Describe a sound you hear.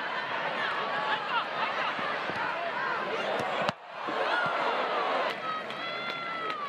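A large crowd cheers and whistles in a stadium outdoors.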